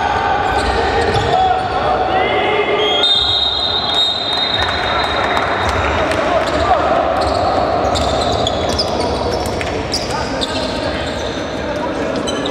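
Sneakers squeak sharply on a gym floor in a large echoing hall.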